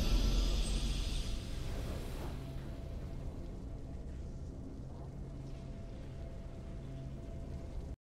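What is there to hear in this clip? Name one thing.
A triumphant game fanfare plays softly.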